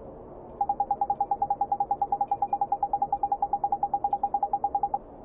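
Rapid short electronic beeps tick steadily, like typed dialogue in a video game.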